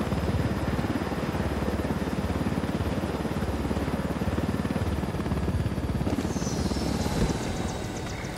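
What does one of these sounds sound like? A helicopter's rotor thumps loudly and steadily.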